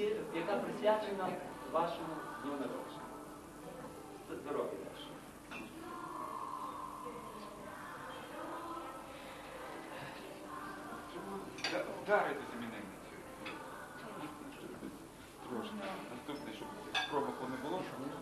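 Several men and women chatter around a table.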